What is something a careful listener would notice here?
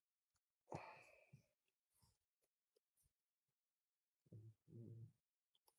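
Playing cards shuffle softly in hands.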